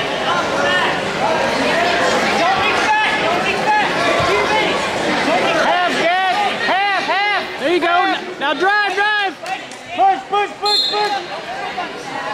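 Adult spectators shout encouragement loudly in a large echoing hall.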